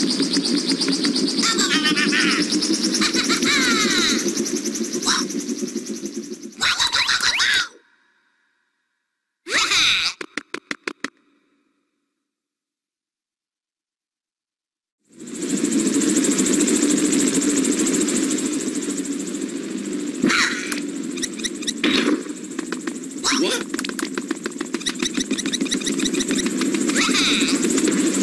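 Bouncy video game music plays.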